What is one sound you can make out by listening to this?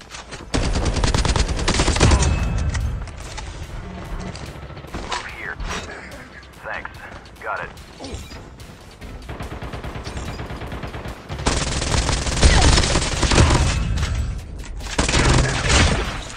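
A gun fires.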